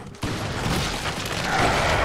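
A beast snarls close by.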